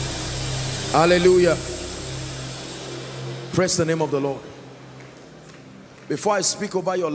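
A man preaches loudly through a microphone in a large echoing hall.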